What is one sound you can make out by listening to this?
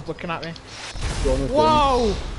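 A loud crash bursts out.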